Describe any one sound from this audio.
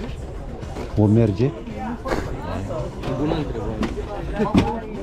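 A man talks close by, casually.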